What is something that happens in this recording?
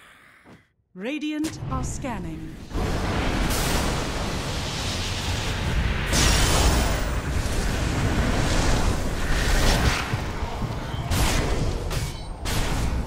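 Magic spells crackle and blast during a fierce fight.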